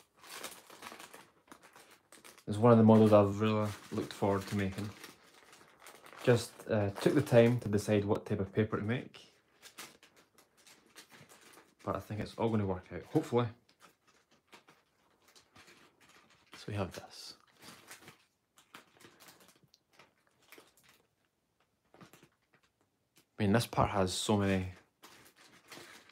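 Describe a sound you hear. Thin paper rustles and crinkles softly as it is folded by hand.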